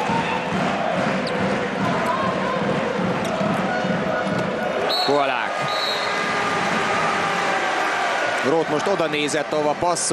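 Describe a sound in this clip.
A large indoor crowd cheers and chants loudly in an echoing arena.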